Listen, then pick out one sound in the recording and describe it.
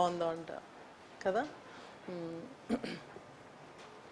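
A woman speaks calmly and clearly, close by.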